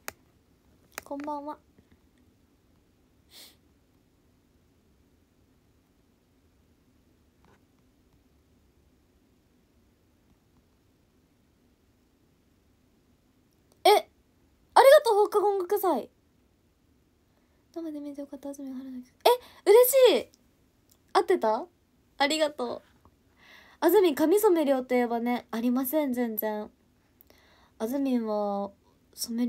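A young woman talks softly and casually, close to a microphone.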